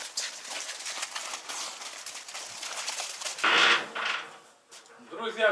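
Pigs grunt and snuffle outdoors.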